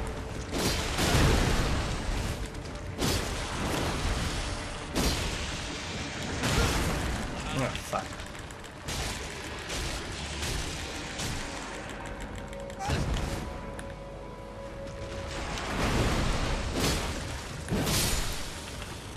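Heavy blows crash and thud again and again as a sword strikes a huge creature.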